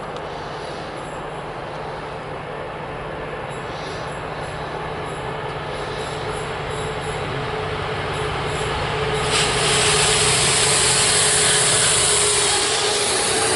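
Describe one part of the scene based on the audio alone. A train approaches with a steady rumbling engine drone, growing louder.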